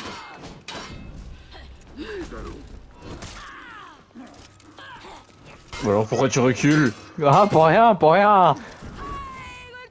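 Metal swords clang and clash repeatedly.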